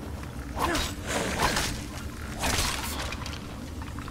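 A sword strikes a skeleton with sharp clanging hits.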